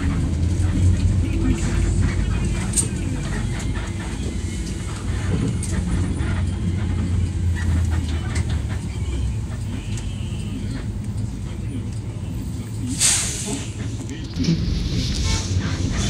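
Traffic passes by outside.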